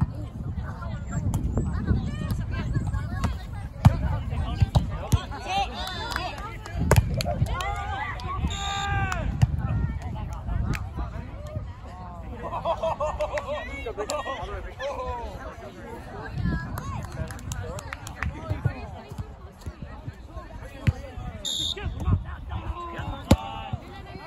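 Young men and women chatter and call out outdoors.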